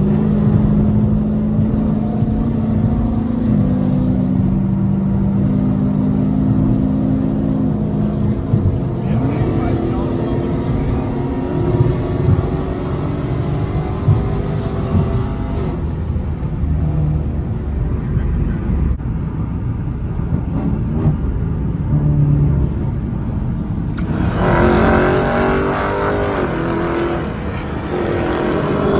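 Tyres and road noise roar steadily.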